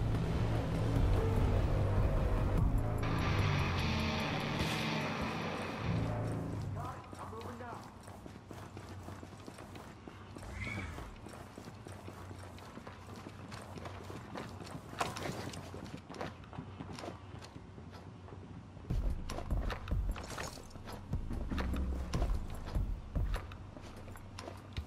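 Footsteps patter quickly over a hard floor.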